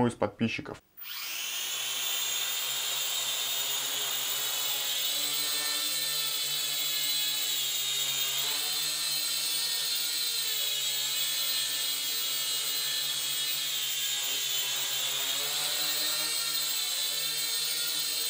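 A small drone's propellers whine steadily, rising and falling in pitch as it hovers and flies about the room.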